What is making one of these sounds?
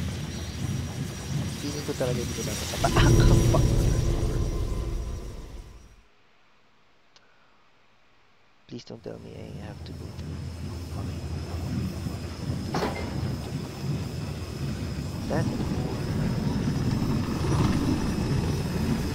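A heavy metal cart rumbles and rattles along a wooden track.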